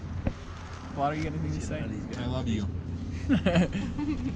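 Young men talk and laugh close by, outdoors.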